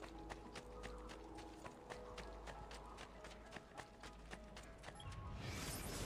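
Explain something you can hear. Running footsteps patter on stone paving.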